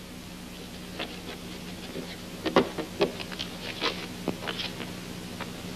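Objects knock and clatter on a wooden table.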